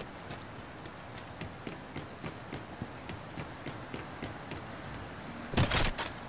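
Footsteps clank on metal stairs at a steady walking pace.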